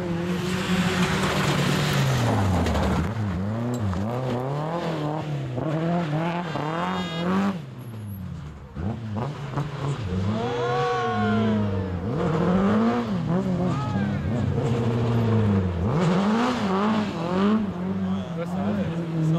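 A rally car engine roars loudly, revving up and down as it races past.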